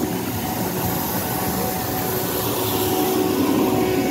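A street cleaning machine hums with its brushes turning.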